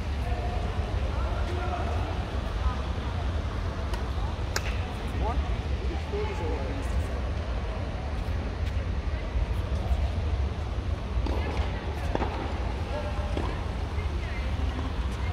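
Badminton rackets hit a shuttlecock back and forth in a large echoing hall.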